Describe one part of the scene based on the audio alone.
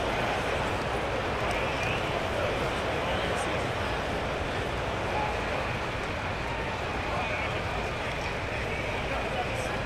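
A large indoor crowd murmurs steadily in an echoing arena.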